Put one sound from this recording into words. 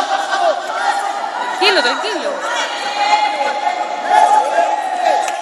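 A crowd of spectators shouts encouragement in an echoing hall.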